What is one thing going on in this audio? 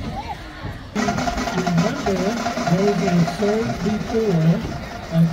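A marching band plays brass music outdoors.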